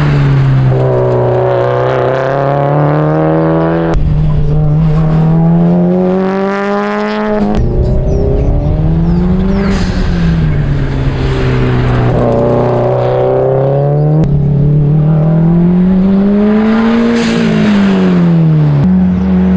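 A sports car engine roars loudly, its pitch rising and falling as it revs and shifts gears.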